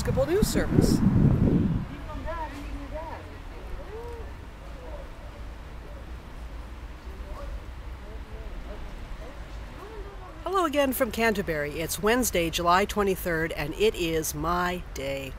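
A middle-aged woman talks close by, with animation.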